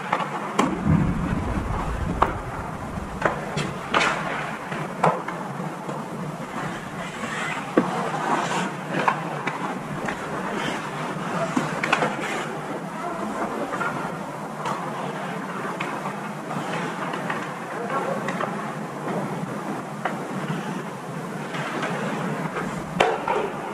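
Ice hockey skates scrape and carve across the ice in an echoing rink.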